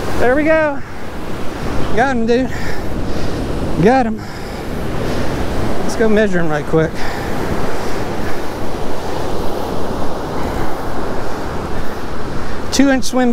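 Wind blows steadily and rumbles outdoors.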